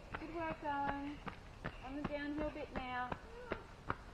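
A runner's footsteps crunch on gravel as they pass.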